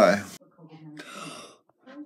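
A boy exclaims loudly close by.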